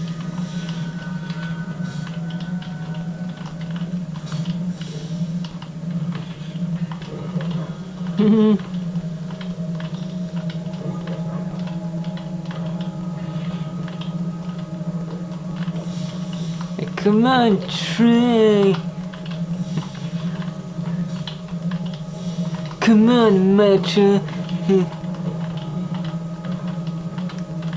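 A steady low drone plays from loudspeakers.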